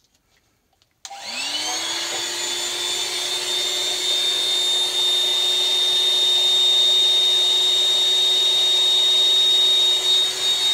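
Liquid fizzes and hisses steadily in a glass.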